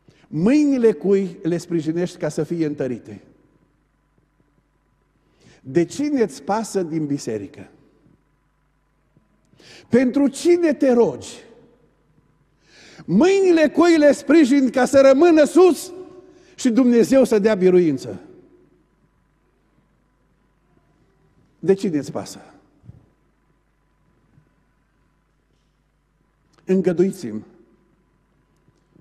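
A middle-aged man preaches through a microphone with animation, in bursts with long pauses.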